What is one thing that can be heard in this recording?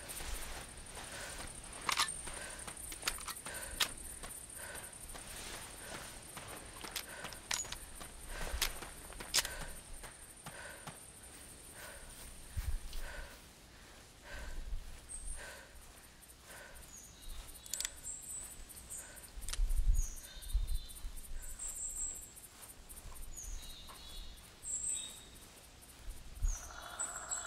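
Footsteps crunch steadily on a forest path.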